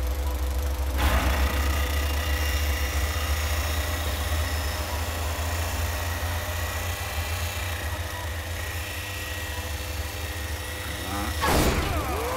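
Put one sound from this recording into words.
A grinder screeches against metal with a harsh, steady hiss.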